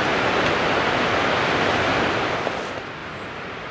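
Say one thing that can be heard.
Leaves and branches rustle as a hiker pushes through dense brush.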